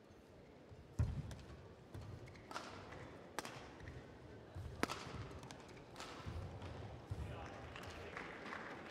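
Shoes thud and squeak on a court floor.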